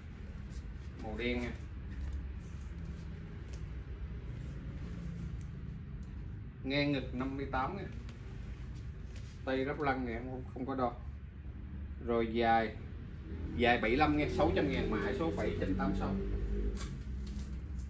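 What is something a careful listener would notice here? A middle-aged man speaks in short bursts nearby.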